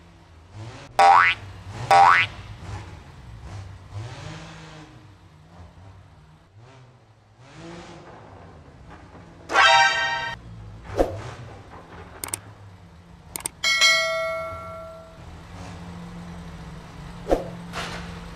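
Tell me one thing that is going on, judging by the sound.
A car thumps over speed bumps.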